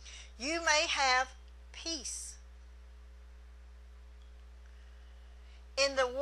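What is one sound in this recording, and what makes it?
A middle-aged woman speaks with emphasis through a microphone, pausing between phrases.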